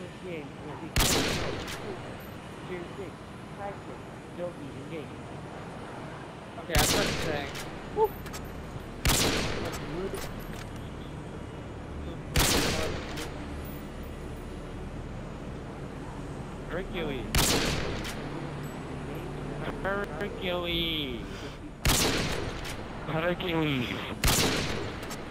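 A bolt-action sniper rifle fires single loud shots.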